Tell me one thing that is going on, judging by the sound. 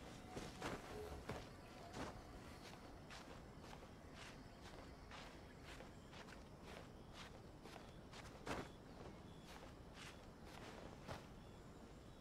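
Quick soft steps tap against rock during a climb.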